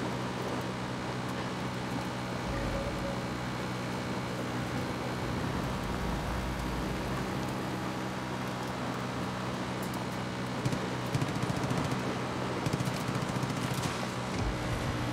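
Tyres crunch over a dirt track.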